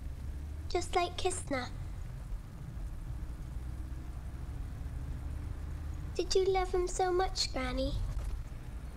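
A young girl speaks softly nearby.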